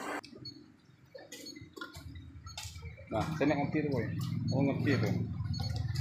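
A digital scale beeps as its buttons are pressed.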